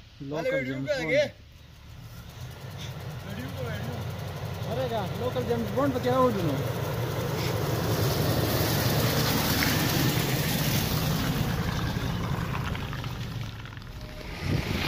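A car engine idles steadily.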